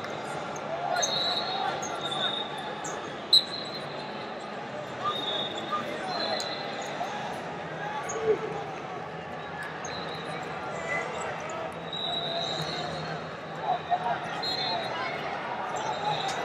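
Wrestlers' feet squeak and thud on a mat.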